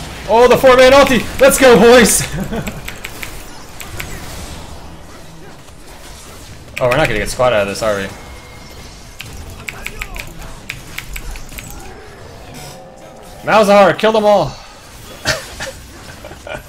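Video game combat effects clash and zap.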